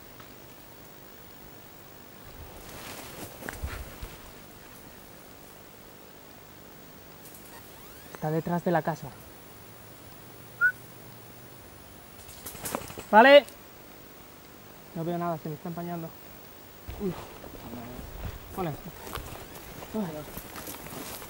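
Leaves and branches rustle close by as someone moves through brush.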